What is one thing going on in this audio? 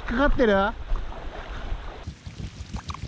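Water trickles over stones in a shallow stream.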